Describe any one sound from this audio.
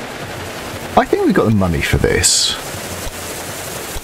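A train rumbles along a track.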